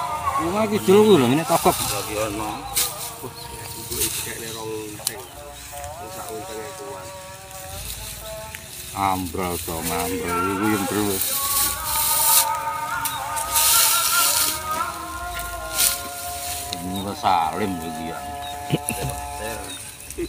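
Dry straw rustles as it is gathered and tied into a bundle.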